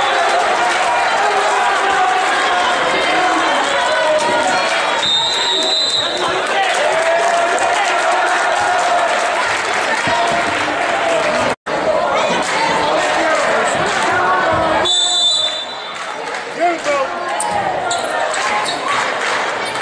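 A crowd of spectators chatters and cheers loudly in an echoing gym.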